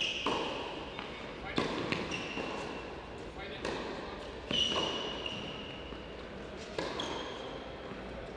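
A tennis ball bounces on a clay court.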